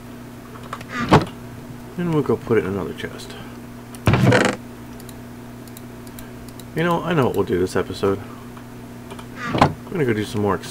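A wooden chest lid creaks shut.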